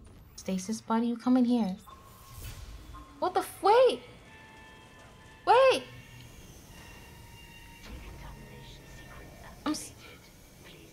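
A young woman speaks animatedly into a close microphone, with high, sing-song exclamations.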